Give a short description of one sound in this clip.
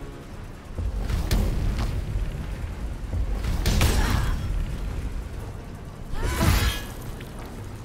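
Weapons clash and strike in a game fight.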